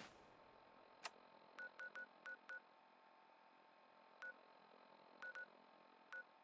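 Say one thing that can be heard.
Short electronic beeps click in quick bursts.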